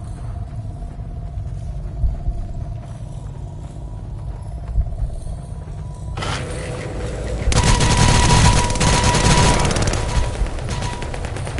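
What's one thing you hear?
Footsteps crunch steadily over dirt and gravel.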